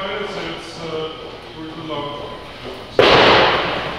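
A man calls out instructions loudly in an echoing room.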